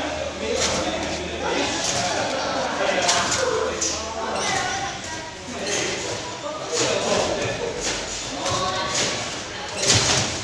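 A trampoline bed creaks and thumps with each bounce.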